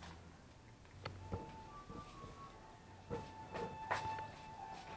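Flip-flops slap on a hard floor as a boy walks.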